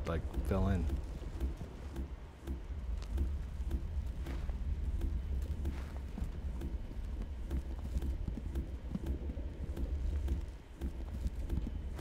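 Footsteps thud steadily through leaves.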